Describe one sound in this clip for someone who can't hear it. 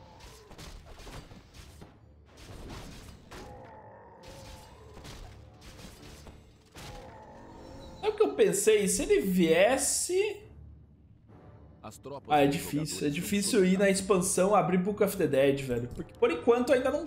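Game sounds of battle clash and ring out.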